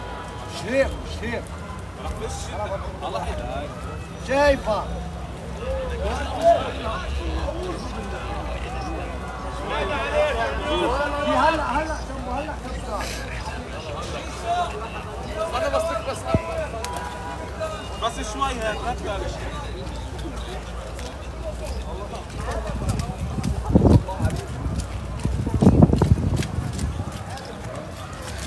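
A crowd of men shout and call out across an open outdoor space.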